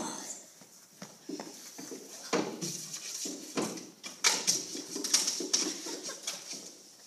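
A wooden box knocks and thumps as a dog paws at it.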